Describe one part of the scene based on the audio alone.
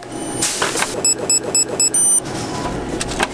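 A keypad beeps as buttons are pressed.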